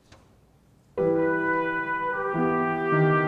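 A piano plays chords.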